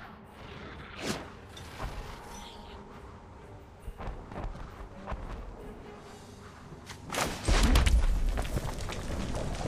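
Short electronic whooshes and chimes play as cards are moved.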